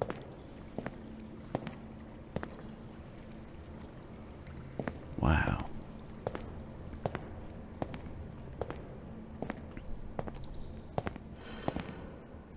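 Footsteps tap steadily on a hard tiled floor in an echoing room.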